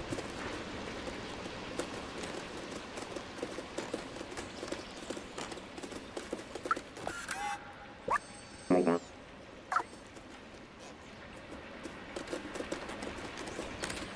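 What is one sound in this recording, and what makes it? A cat's paws patter softly on wooden planks.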